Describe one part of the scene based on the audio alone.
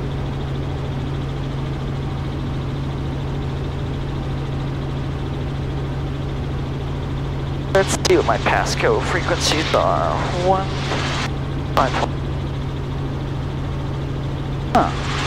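A helicopter engine and rotor drone steadily inside the cabin.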